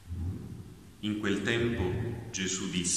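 A young man speaks calmly into a nearby microphone.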